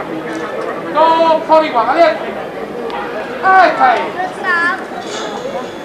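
Men and women in a crowd call out loudly.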